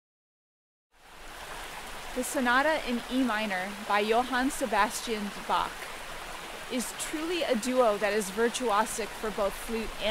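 A stream splashes over rocks nearby.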